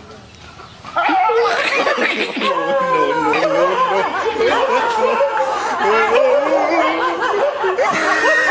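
Dogs bark and yelp excitedly close by.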